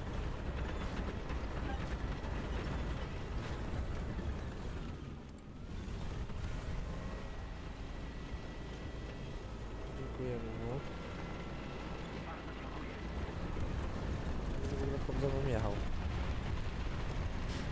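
Tank tracks clank over rubble.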